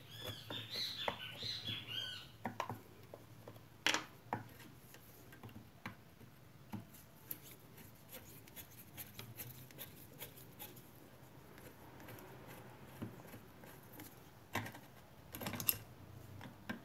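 A screwdriver scrapes and clicks against metal.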